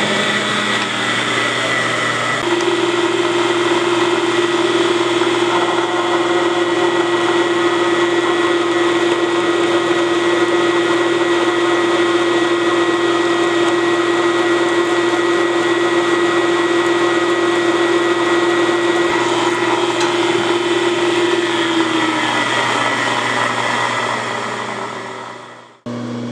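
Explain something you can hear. A drill press whirs steadily.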